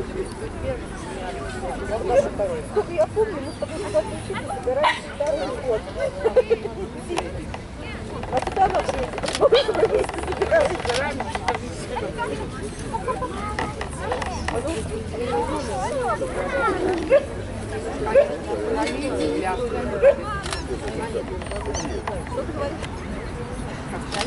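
A crowd of men and women chatters in the open air.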